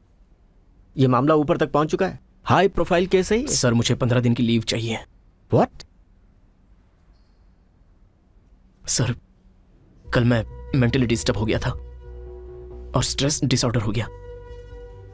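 A young man answers calmly and close by.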